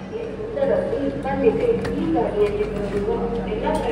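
Footsteps clank on a metal floor plate.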